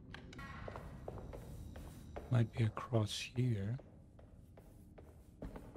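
Footsteps walk across a hard stone floor in a large echoing hall.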